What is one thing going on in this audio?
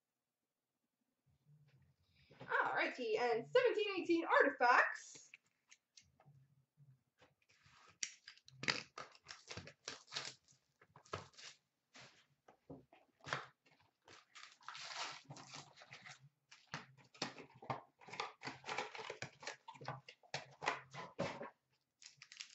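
Cardboard boxes scrape and tap on a glass counter.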